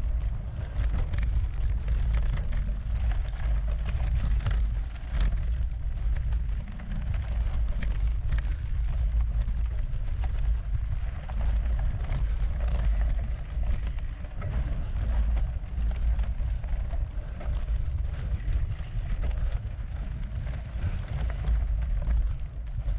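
Bicycle tyres crunch and rattle over a gravel trail.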